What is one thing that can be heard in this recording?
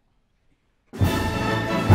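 A large orchestra suddenly starts playing loudly.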